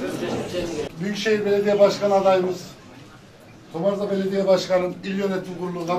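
A man speaks into a microphone over a loudspeaker, in a room with some echo.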